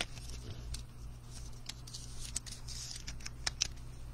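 A card clicks as it slides into a hard plastic case.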